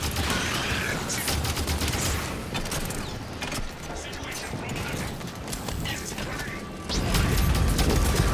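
Rapid gunfire crackles in short bursts.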